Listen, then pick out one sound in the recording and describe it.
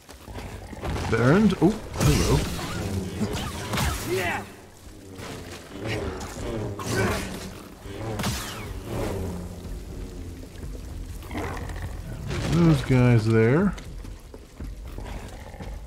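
A lightsaber hums and swishes through the air.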